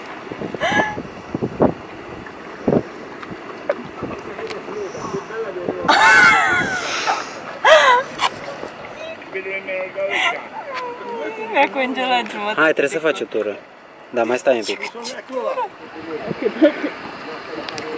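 Water splashes and laps around a young woman wading.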